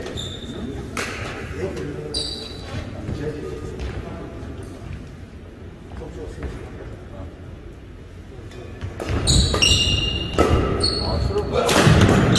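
A ball is kicked with sharp thuds that ring through an echoing hall.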